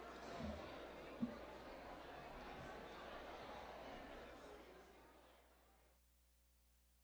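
A crowd murmurs and chatters in a large echoing hall, then fades out.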